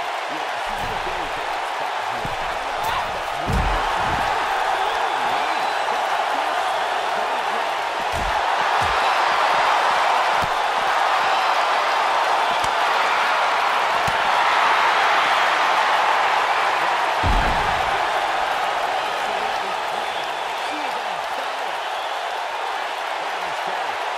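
A large crowd cheers loudly and steadily.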